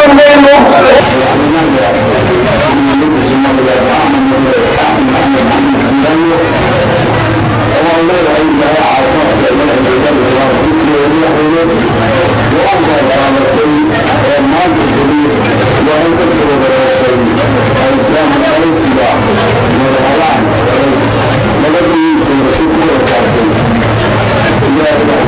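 A man speaks forcefully into a microphone, heard through a loudspeaker.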